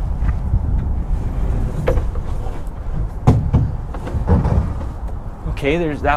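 A wooden panel knocks against a truck bed.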